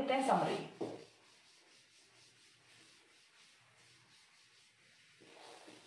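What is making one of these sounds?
A duster rubs across a chalkboard.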